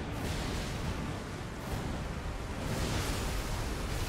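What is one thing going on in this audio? Heavy blows and sword swings clash.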